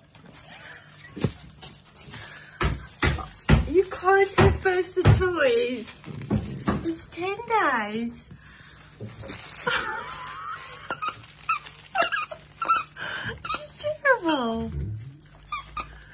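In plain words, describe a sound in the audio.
A rubber toy squeaks again and again as a dog chews it.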